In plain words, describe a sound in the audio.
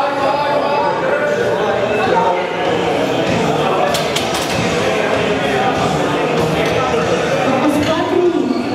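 Several men shout encouragement loudly in an echoing hall.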